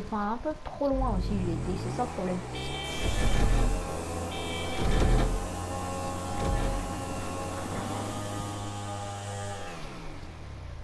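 A motorcycle engine revs and hums steadily.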